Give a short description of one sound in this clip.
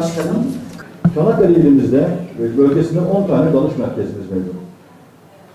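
A middle-aged man speaks calmly into microphones.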